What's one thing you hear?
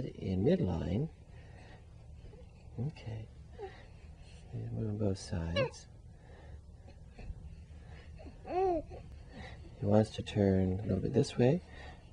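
A baby coos and fusses up close.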